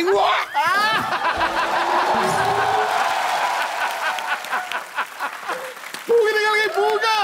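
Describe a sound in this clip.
A studio audience laughs and cheers loudly.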